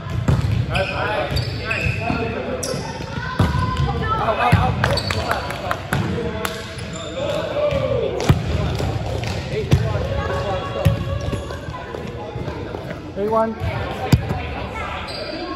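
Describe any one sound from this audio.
Young men shout and call out in an echoing hall.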